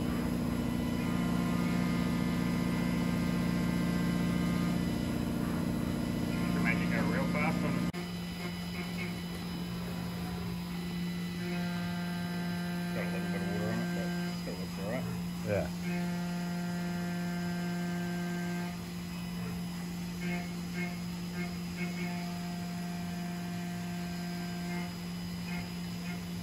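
Coolant sprays and splashes onto the workpiece.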